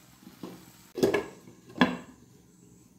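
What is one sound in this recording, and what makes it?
A glass lid clinks down onto a metal pan.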